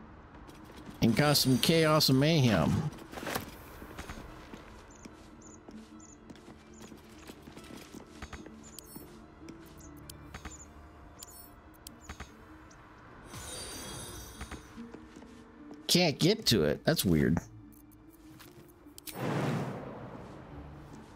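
An older man speaks with animation into a close microphone.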